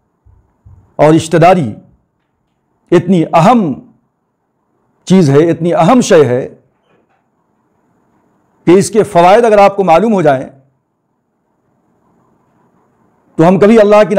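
A middle-aged man speaks calmly and clearly into a close microphone, pausing between phrases.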